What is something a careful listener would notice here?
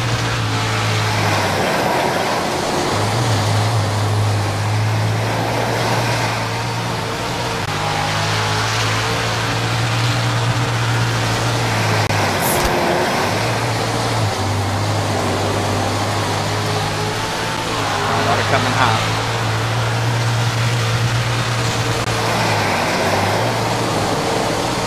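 Tyres skid and spray over loose dirt.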